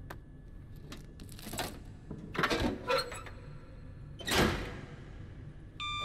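Tape rips off a metal panel.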